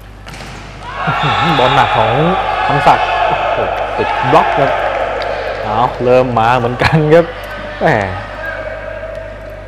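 A crowd of spectators cheers in an echoing indoor hall.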